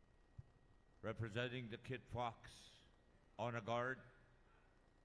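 A man speaks loudly over a loudspeaker.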